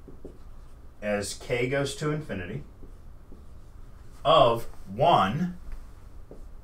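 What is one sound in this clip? An older man speaks calmly, in a lecturing tone, close by.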